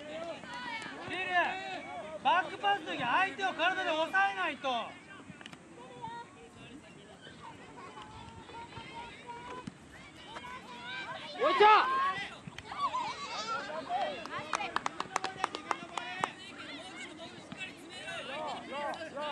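Children shout and call out to each other outdoors.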